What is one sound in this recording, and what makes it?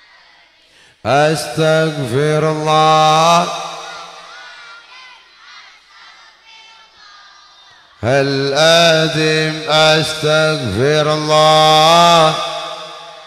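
An elderly man chants in a long, drawn-out melody through a microphone and loudspeakers.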